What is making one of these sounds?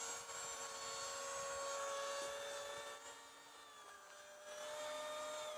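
A small model aircraft motor whines at a high, steady pitch close by.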